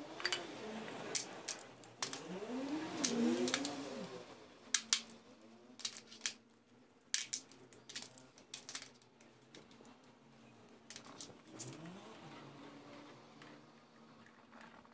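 Small metal pieces clink and rattle in a metal tray.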